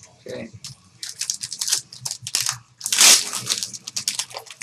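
Plastic wrapping crinkles and rustles as it is torn open.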